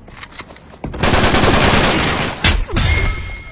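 A gun fires in rapid bursts in a video game.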